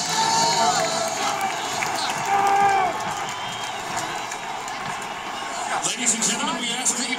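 Fans nearby whoop and shout.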